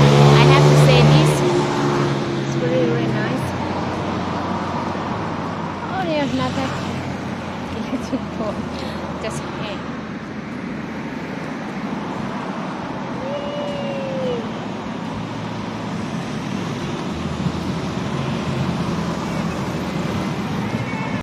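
A woman speaks calmly and closely outdoors.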